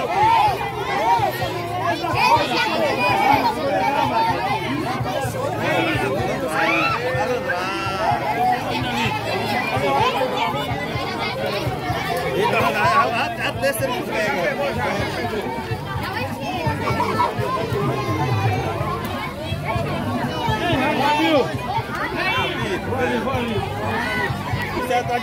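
A crowd of children and adults chatters and calls out nearby, outdoors.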